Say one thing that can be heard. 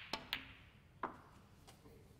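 Snooker balls knock against each other.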